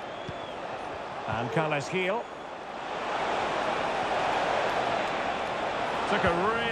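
A large stadium crowd cheers steadily and swells louder.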